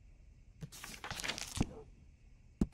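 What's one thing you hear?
Paper pages rustle as a page is turned.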